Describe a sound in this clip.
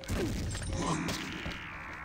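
A monster's claws slash through the air with a whoosh.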